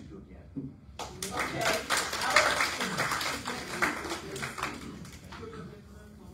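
A group of people applaud loudly.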